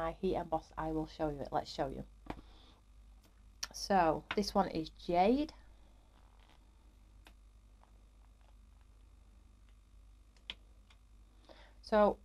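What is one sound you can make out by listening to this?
A woman talks calmly and closely into a microphone.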